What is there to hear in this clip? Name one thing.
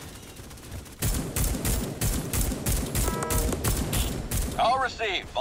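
A rifle fires a rapid, steady string of loud shots.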